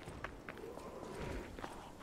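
Footsteps run over rough ground.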